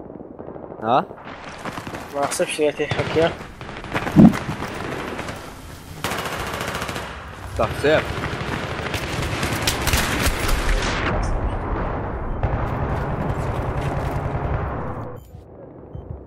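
Rapid gunfire rattles and echoes indoors.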